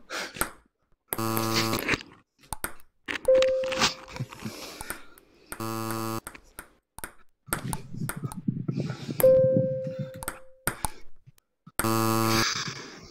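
A ping-pong ball taps back and forth on a table and paddle.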